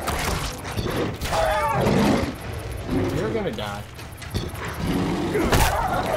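A wolf snarls and yelps.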